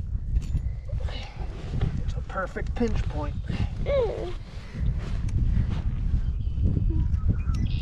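Dry straw rustles and crackles underfoot.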